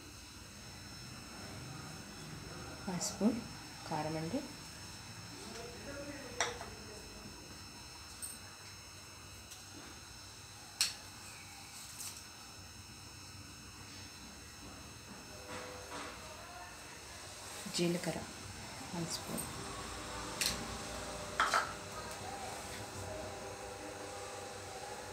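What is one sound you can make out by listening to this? Liquid simmers and bubbles gently in a pot.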